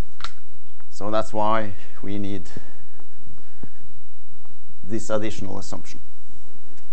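A man lectures in a room with a slight echo, speaking calmly with pauses.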